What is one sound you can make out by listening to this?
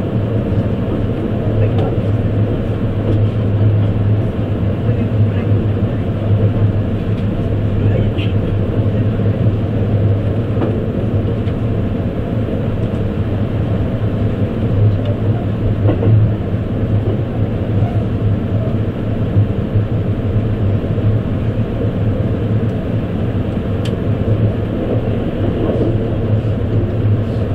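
A train rumbles steadily along the tracks, heard from inside a carriage.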